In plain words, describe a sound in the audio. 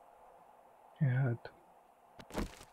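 A young man speaks briefly close to a microphone.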